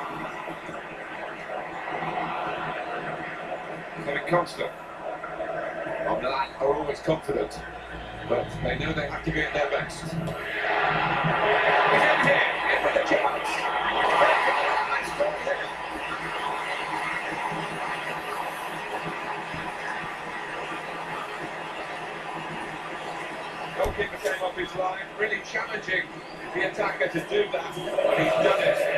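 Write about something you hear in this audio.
A stadium crowd roars and cheers through a television speaker, swelling loudly for a few seconds.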